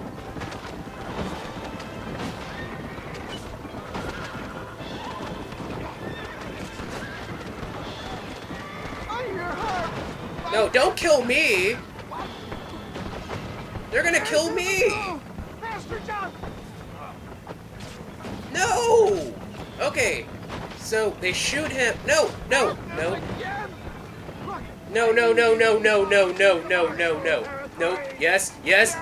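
A horse-drawn wagon rumbles along a dirt road.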